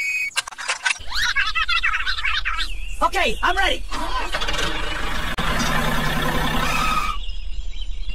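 A small toy motor whirs steadily.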